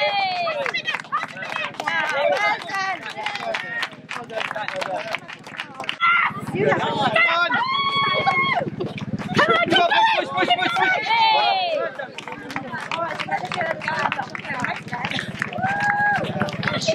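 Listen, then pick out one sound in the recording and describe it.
A crowd of men and women shout and cheer encouragement outdoors.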